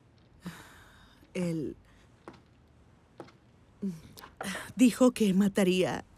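A woman speaks quietly and tensely nearby.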